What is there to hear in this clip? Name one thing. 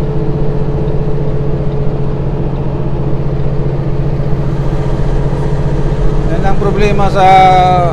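A truck engine drones steadily while driving.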